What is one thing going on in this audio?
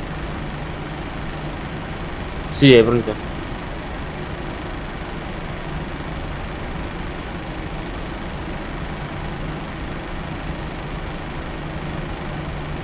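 Jet engines hum steadily as an airliner taxis.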